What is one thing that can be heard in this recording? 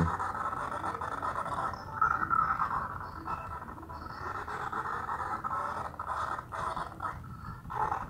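A whirlwind roars steadily.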